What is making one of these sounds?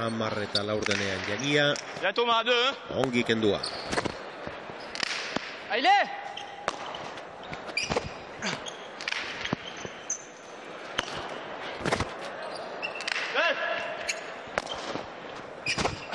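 A ball smacks sharply against a wall and floor, echoing in a large hall.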